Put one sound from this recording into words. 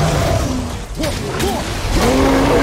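An axe strikes flesh with heavy thuds.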